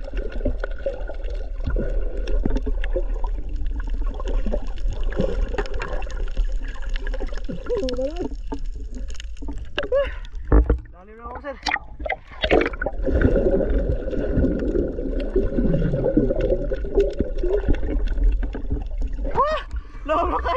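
Bubbles gurgle and rumble close by underwater.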